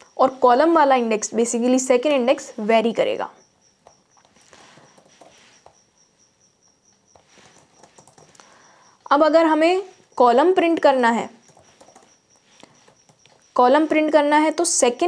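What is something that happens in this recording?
A young woman speaks calmly and clearly into a close microphone, pausing now and then.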